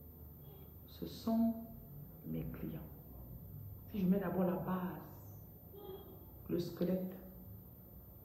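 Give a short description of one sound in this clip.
A woman speaks calmly and close to the microphone, in short phrases with pauses.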